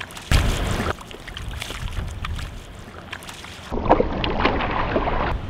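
Water ripples and laps steadily close by.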